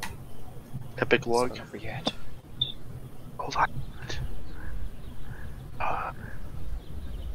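A young man makes short vocal sounds close to a microphone.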